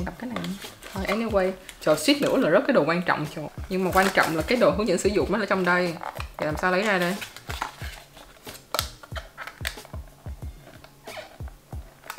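Paper packaging rustles and crinkles.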